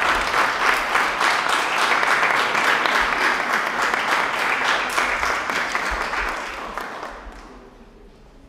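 An audience applauds in a room with some echo, then the applause dies away.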